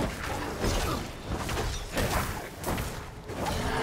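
Game combat sounds of hits and blasts ring out.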